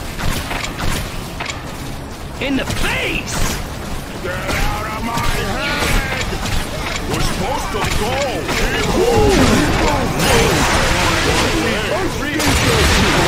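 Weapons clash and strike enemies in quick bursts.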